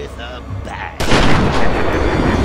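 A gunshot rings out loudly and echoes.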